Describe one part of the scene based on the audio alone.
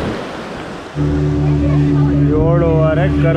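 A boat engine drones steadily up close.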